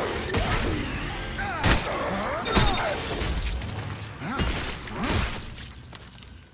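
A creature snarls and shrieks.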